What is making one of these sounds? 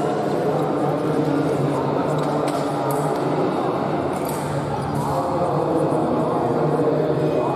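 Many voices murmur and chatter in a large echoing hall.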